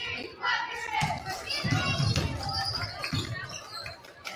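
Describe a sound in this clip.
A basketball bounces on the court with heavy thuds.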